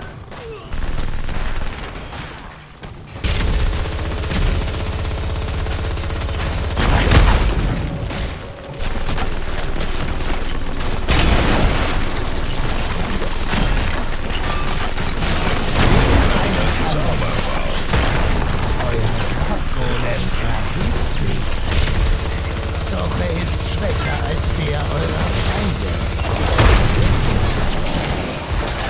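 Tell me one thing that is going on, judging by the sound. Game spell blasts and weapon fire crackle and boom in a busy fight.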